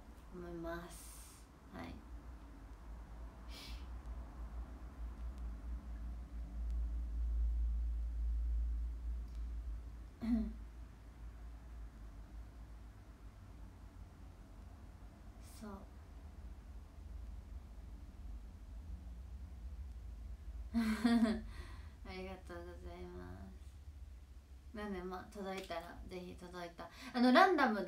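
A young woman talks calmly and softly into a nearby microphone, with pauses.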